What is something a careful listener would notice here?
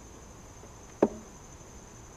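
A hive tool clicks sharply against a wooden frame.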